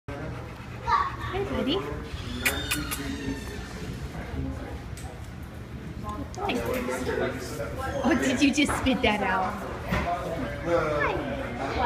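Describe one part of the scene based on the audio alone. A woman talks warmly close by.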